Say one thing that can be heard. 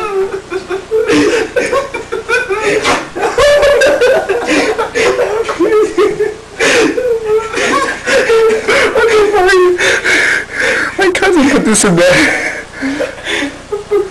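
Several young people laugh and shout in a room.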